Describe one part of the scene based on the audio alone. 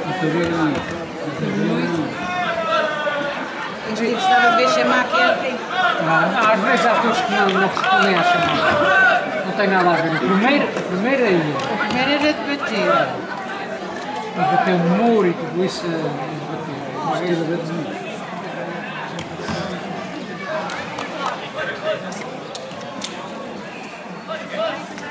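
A crowd of men and women shouts and calls out with excitement outdoors.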